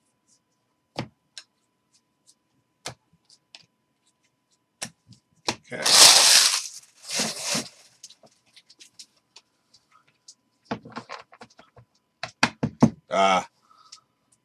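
Trading cards rustle and slap softly as they are sorted by hand.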